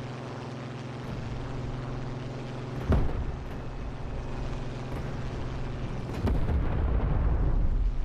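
Wind rushes past a diving plane.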